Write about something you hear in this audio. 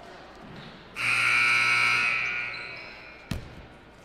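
A referee's whistle blows loudly once.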